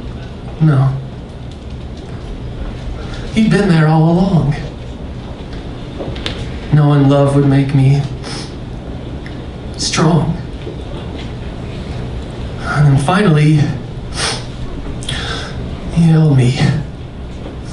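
A man sings into a microphone in short held phrases.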